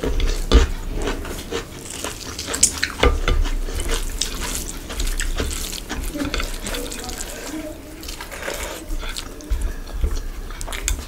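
Bare fingers squish and mix rice with curry on a plate.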